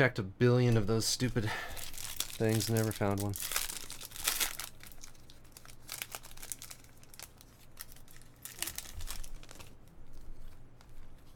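A foil wrapper crinkles and rustles in someone's hands.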